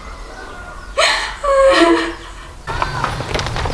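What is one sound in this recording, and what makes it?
A young woman sobs and cries out nearby.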